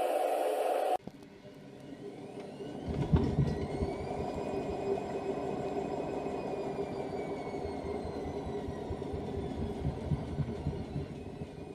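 A washing machine motor hums and whines as its drum turns.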